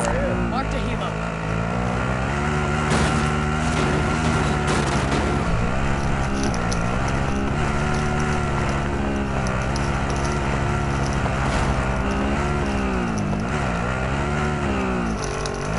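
A vehicle engine roars and revs up and down.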